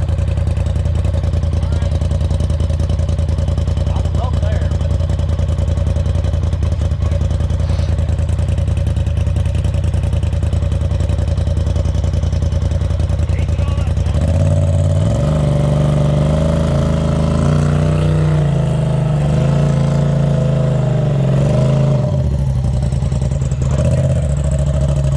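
An off-road vehicle's engine rumbles steadily nearby.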